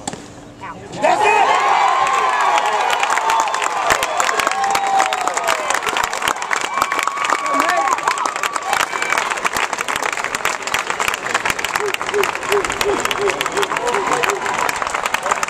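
A crowd claps and cheers loudly outdoors.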